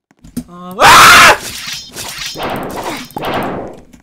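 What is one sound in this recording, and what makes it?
A blade swooshes through the air in a sharp swing.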